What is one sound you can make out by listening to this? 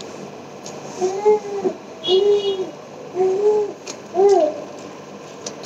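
A man hums a short tune.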